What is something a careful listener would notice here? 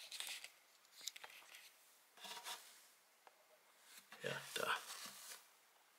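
Fingers rub and bump against a phone close up, making scraping and thumping noises.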